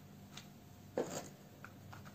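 A small wooden box taps on a table.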